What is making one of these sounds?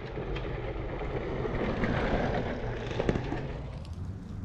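Another mountain bike rushes past close by.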